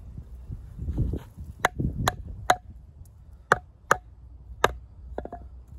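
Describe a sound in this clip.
A wooden baton knocks sharply on the back of a knife blade.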